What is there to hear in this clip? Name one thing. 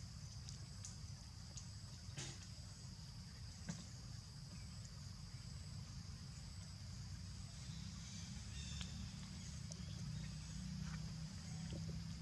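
A small monkey scrambles and scratches over rough bark.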